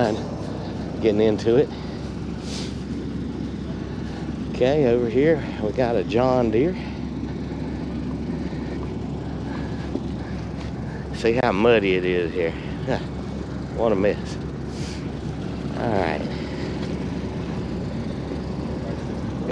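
Footsteps squelch on soft muddy ground.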